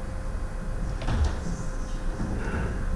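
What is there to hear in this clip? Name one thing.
A microphone bumps and thuds.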